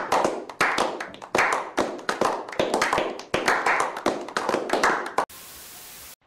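A group of men clap their hands close by.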